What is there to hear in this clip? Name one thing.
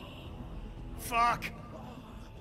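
A man shouts sharply.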